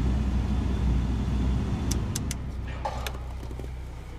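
A dial clicks as it is turned.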